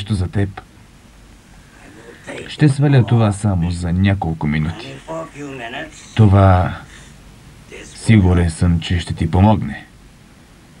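An elderly man speaks softly and gently nearby.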